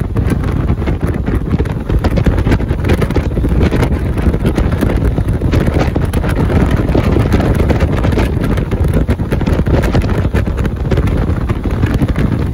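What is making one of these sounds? Wind rushes loudly past a vehicle driving fast along a road.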